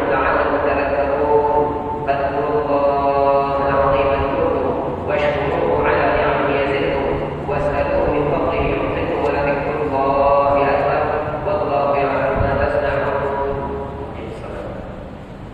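A man chants in a long, melodic voice over a loudspeaker, echoing through a large hall.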